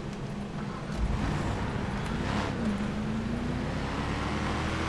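A pickup truck's engine hums and slowly revs up.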